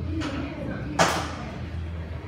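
Metal weight plates clank sharply on a barbell.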